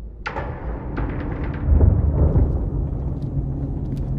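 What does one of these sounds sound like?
Footsteps fall on a hard concrete floor.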